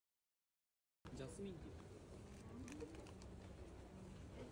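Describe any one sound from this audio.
A plastic package crinkles as it is handled.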